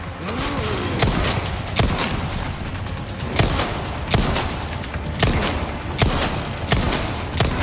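A pistol fires shot after shot.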